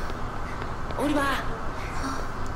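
A young girl calls out softly.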